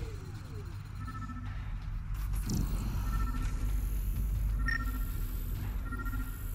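A handheld scanner beeps in short electronic tones.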